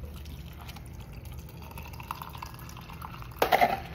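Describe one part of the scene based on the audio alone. A drink pours into a paper cup.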